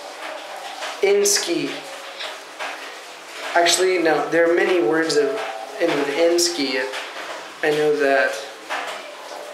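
A young man speaks close up, in a small echoing room.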